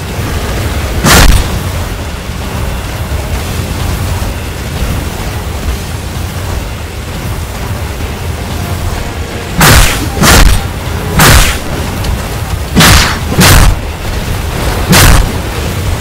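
Sword strikes land with sharp, heavy impacts.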